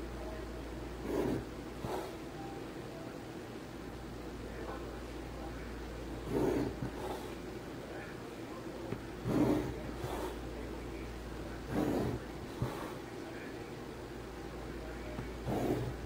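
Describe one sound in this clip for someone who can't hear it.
A plastic ruler slides across paper.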